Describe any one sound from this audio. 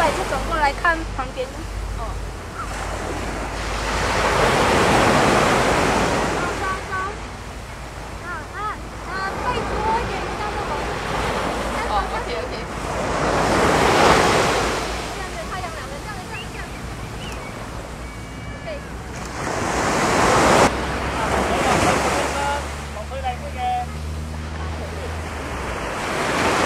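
Waves wash onto a beach, swelling and fading.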